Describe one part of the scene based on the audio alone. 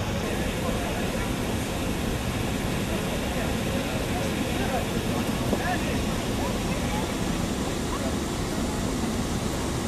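A group of men and women chatter quietly in the distance.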